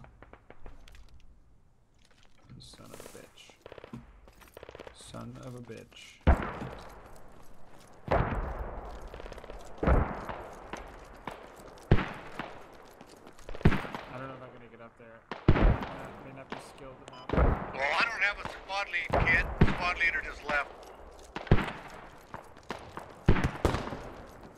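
Footsteps crunch on sand and gravel.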